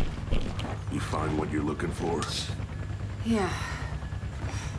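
A man asks a question in a deep, gruff voice.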